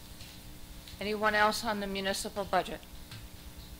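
A woman speaks through a microphone in a large room, with a slight echo.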